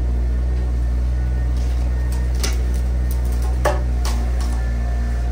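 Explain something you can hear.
A mini excavator's diesel engine rumbles steadily close by.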